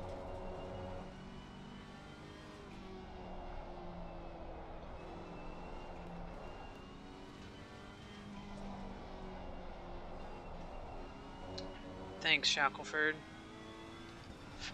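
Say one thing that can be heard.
A racing car engine roars steadily, rising and falling in pitch with gear changes.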